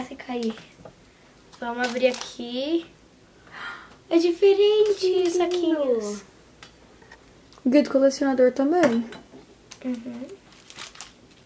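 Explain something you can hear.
A young girl talks cheerfully and close by.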